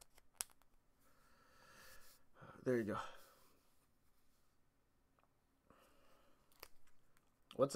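A man speaks calmly and close to a microphone, in short phrases.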